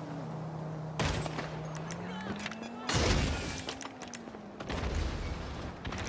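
Gunshots crack sharply.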